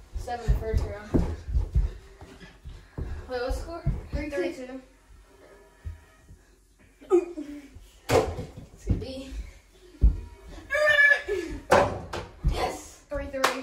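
Two boys talk and shout excitedly in a room.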